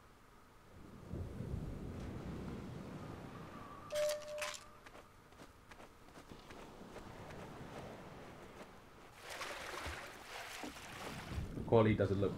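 Water laps gently at a shore.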